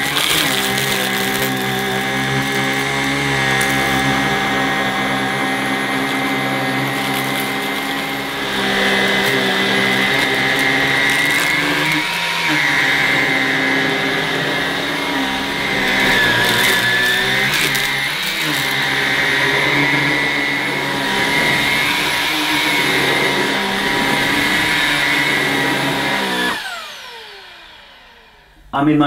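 A vacuum cleaner motor whirs with a steady high whine, then winds down.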